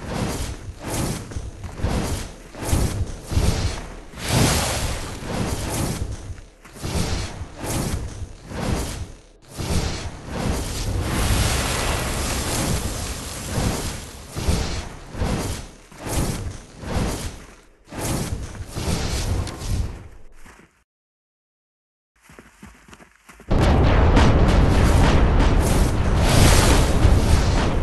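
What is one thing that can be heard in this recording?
Magic blasts burst with loud whooshes.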